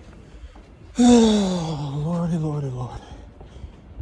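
A man yells loudly up close, his voice wavering up and down.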